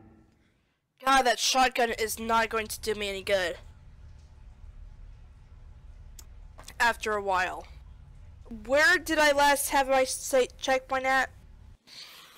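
A young woman talks excitedly, close to a microphone.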